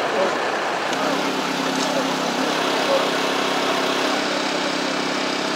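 A hydraulic rescue pump drones steadily nearby.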